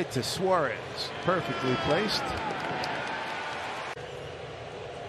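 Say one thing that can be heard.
A crowd cheers briefly and fades.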